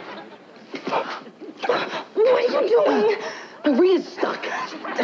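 A young man speaks roughly close by.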